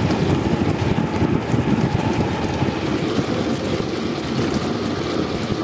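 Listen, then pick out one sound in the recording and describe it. Bicycle tyres roll and hum on the road.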